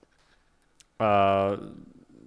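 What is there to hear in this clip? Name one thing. A young man speaks into a close microphone.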